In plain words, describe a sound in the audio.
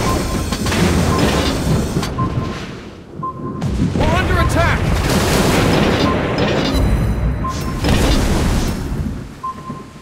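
Ship guns fire with heavy booms.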